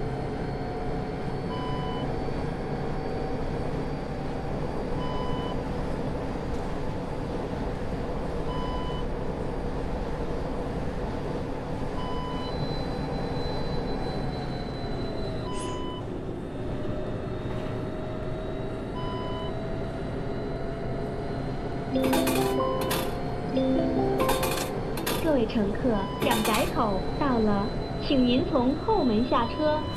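A bus engine hums steadily as the bus drives along, dropping in pitch as it slows and rising again.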